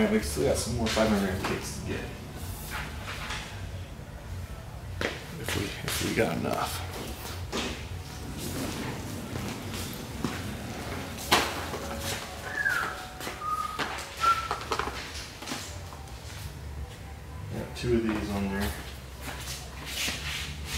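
Cardboard boxes knock and rustle as they are moved in a cart.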